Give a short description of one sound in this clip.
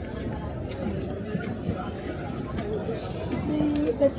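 Footsteps climb stone steps among a crowd.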